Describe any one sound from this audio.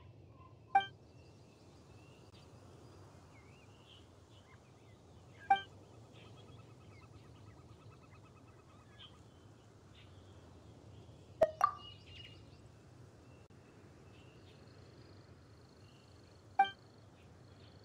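A soft chime sounds several times.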